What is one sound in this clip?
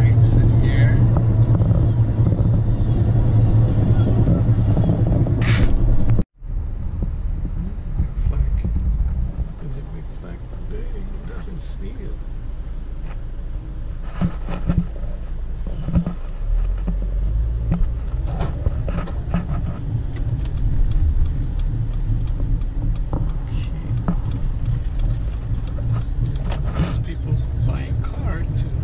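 Tyres roll on the road with a low rumble.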